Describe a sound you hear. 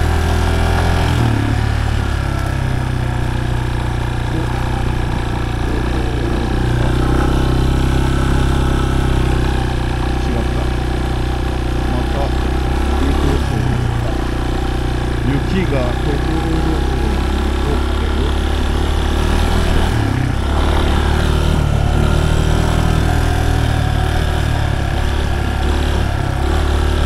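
Tyres crunch over loose gravel and stones.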